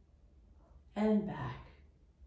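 A middle-aged woman speaks calmly and briefly close by.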